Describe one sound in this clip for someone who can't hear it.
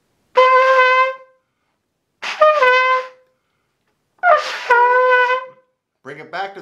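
A trumpet plays short held notes close by.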